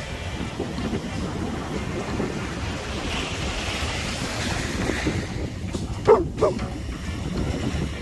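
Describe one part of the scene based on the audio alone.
Waves wash gently onto a beach nearby.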